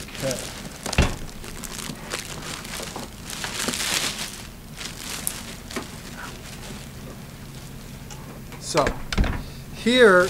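A heavy object knocks on a surface.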